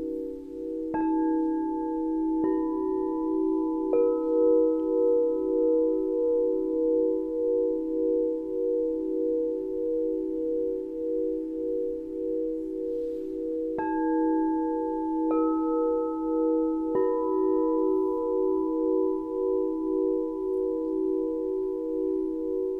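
A mallet strikes crystal singing bowls, each strike leaving a long ringing tone.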